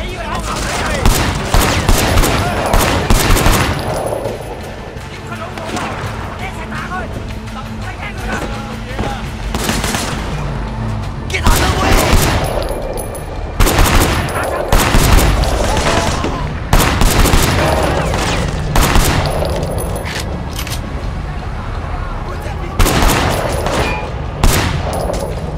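Pistol shots ring out in sharp bursts, echoing through a large hall.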